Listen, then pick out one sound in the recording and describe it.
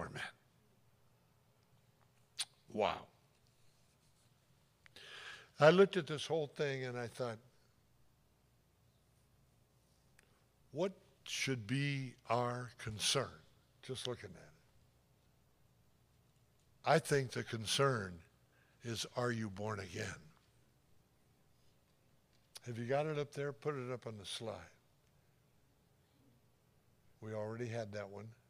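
An elderly man speaks with emphasis into a microphone, in bursts with long pauses.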